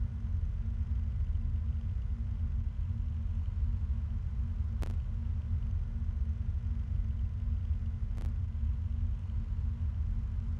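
An electric fan hums with a steady low drone.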